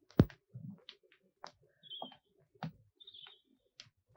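Footsteps tread on pavement outdoors.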